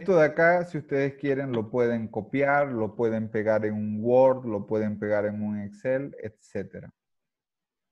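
A young man speaks calmly into a microphone, heard through an online call.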